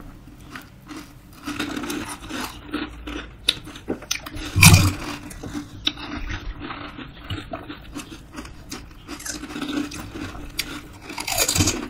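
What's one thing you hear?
Crisp hollow shells crunch as they are eaten up close.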